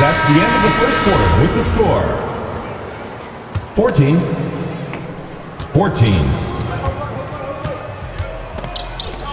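A basketball bounces with dull thuds on a hardwood floor.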